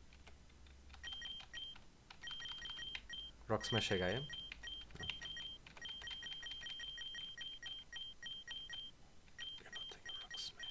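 Short electronic menu beeps tick rapidly.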